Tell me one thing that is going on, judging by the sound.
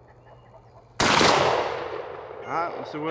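A gunshot cracks loudly close by and echoes across open ground.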